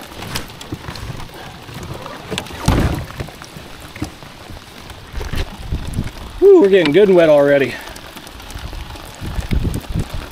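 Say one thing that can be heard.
Water laps gently against a kayak hull.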